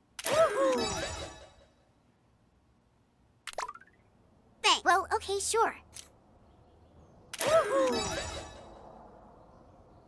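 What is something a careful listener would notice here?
A bright, sparkly chime sounds and rings out.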